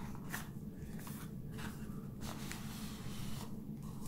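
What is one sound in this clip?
A cardboard sleeve slides open with a soft scrape.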